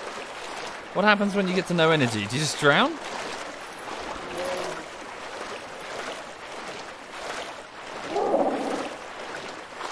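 A large creature lets out loud, wavering, gliding calls.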